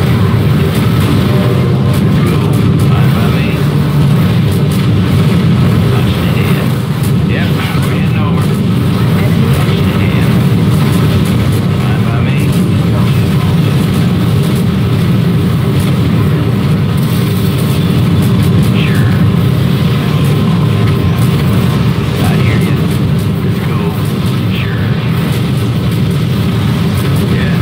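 Explosions boom and crackle again and again.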